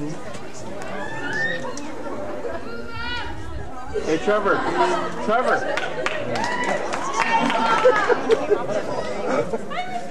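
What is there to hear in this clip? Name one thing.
A crowd of young people chatters and calls out close by, outdoors.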